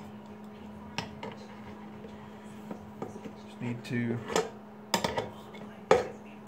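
Metal tools click and clink against metal.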